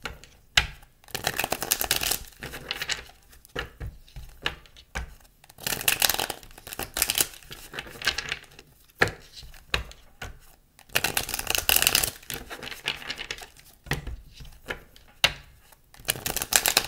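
Playing cards riffle and flutter as they are shuffled by hand.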